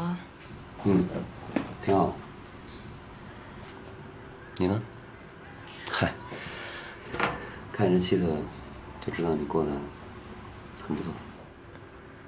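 A young man speaks calmly and warmly up close.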